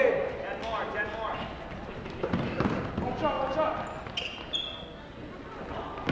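Spectators chatter and call out from the stands.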